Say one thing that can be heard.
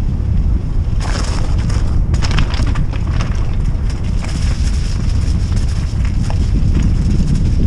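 Tyres crunch and rattle over loose gravel.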